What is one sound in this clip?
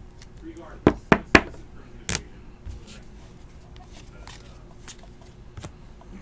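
Cards rustle and click as hands shuffle through them.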